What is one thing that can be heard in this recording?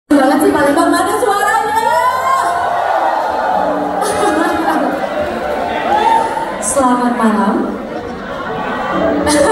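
A live band plays backing music.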